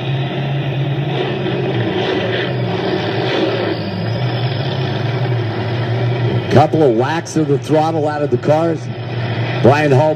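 A race car engine idles with a steady low rumble, heard through a small loudspeaker.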